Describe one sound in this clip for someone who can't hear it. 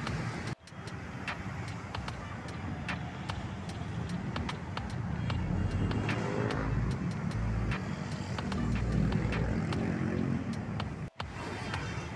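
Traffic rumbles by on a busy city street.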